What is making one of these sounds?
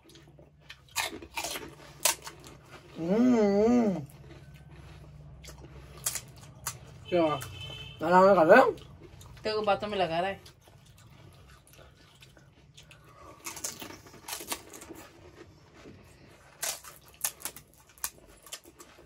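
Crisp hollow shells crack and crunch as they are broken and eaten.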